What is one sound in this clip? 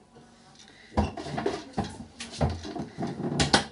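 A metal basket rattles and clatters as it is handled.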